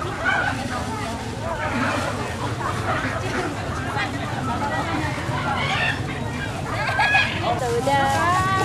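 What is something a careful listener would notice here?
A crowd of people chatters in the open air.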